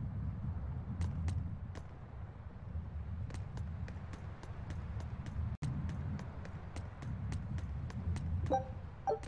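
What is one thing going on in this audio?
Footsteps run quickly across stone paving.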